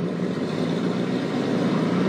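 A large vehicle's engine rumbles steadily.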